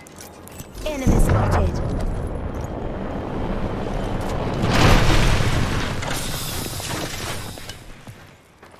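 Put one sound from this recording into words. A loud blast bursts and rumbles, then slowly fades.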